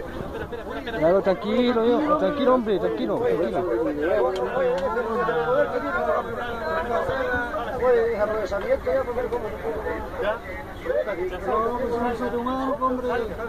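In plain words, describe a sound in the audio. A man argues loudly close by.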